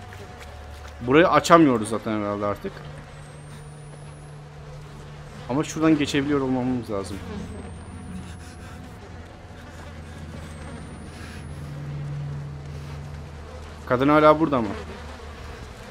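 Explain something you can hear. A young man speaks close to a microphone in short bursts.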